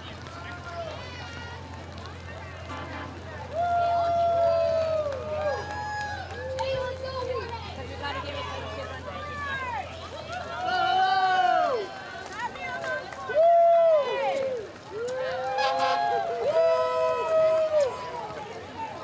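Children shout and call out excitedly.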